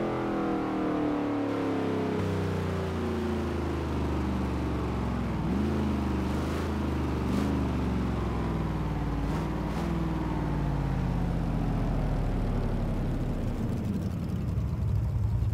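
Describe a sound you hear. A car engine rumbles and drops in pitch as the car slows down.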